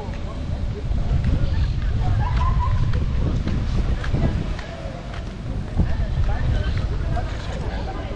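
Skateboard wheels roll and rumble on pavement close by.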